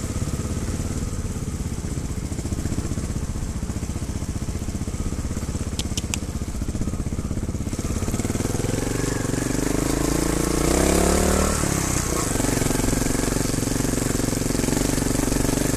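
A dirt bike engine rumbles close by, revving higher and then dropping back.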